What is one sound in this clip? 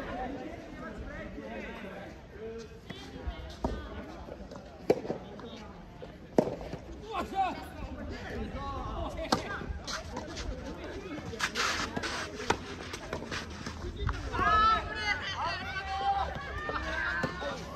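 Several people talk and call out at a distance.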